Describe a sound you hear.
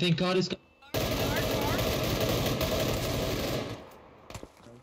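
A rifle fires a rapid burst of gunshots.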